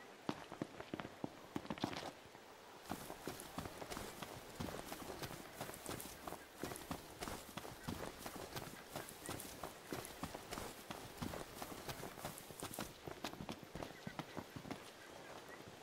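Footsteps run over grass and rock.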